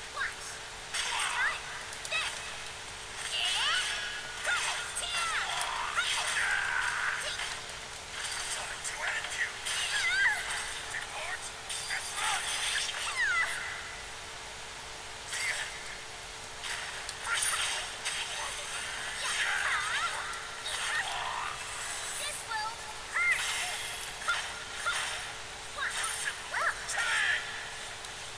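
Swords clash and strike in quick bursts throughout a fight.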